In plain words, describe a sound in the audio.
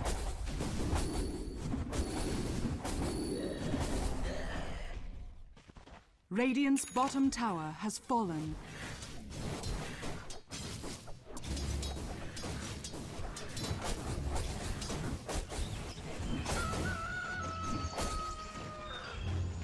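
Weapons clash and magic effects crackle in a fantasy battle.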